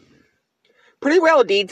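A talking plush toy plays a cheerful recorded voice when squeezed.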